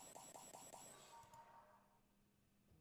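A video game plays a soft sparkling chime.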